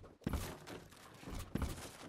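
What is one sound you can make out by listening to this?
A hammer knocks on wooden planks.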